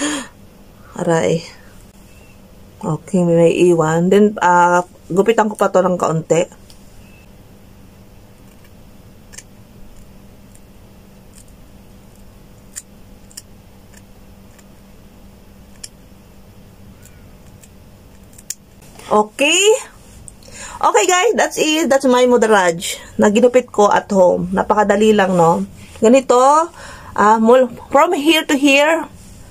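A young woman talks animatedly close to a microphone.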